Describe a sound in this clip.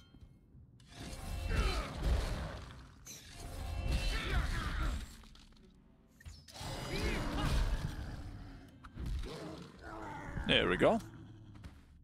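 Swords clash and clang in a close fight.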